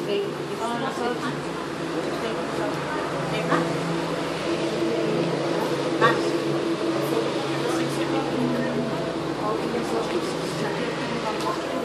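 A crowd of men and women talks and murmurs close by.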